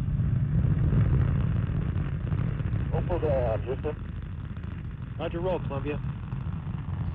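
A rocket roars with a deep, steady rumble as it lifts off.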